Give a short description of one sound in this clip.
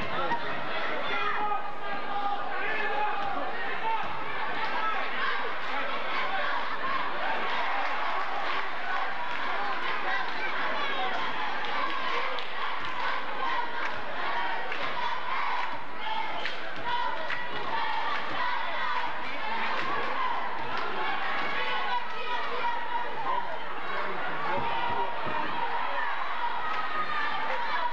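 A large crowd chatters and cheers in an echoing gym.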